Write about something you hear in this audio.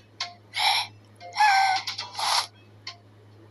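A cartoon cat gives a long, whiny yawn.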